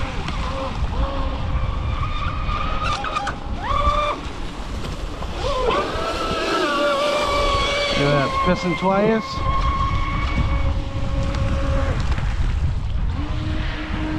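Wind buffets the microphone outdoors with a low rumble.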